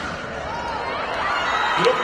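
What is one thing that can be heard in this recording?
A young woman exclaims loudly.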